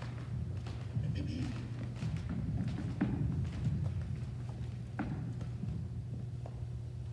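A woman speaks quietly through a microphone in a large echoing hall.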